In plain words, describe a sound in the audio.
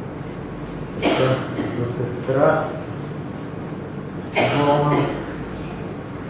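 A boy reads aloud in a quiet, softly echoing room.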